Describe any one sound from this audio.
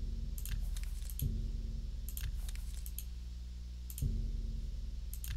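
Soft interface clicks tick as menu items are selected.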